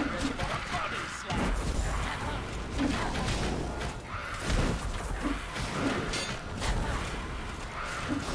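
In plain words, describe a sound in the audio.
Magic spells burst and crackle.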